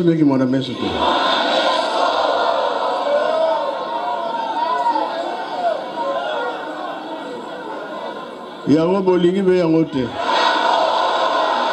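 A crowd cheers and sings.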